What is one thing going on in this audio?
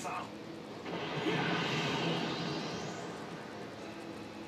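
An energy blast whooshes and rushes past.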